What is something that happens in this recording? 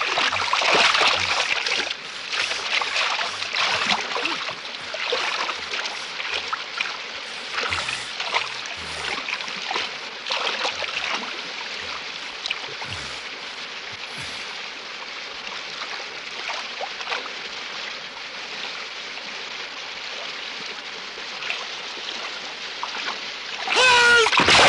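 A river rushes and roars steadily outdoors.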